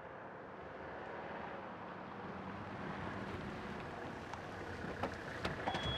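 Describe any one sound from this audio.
A car approaches slowly on paving.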